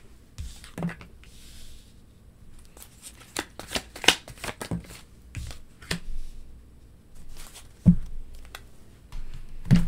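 Playing cards slap and slide softly onto a table.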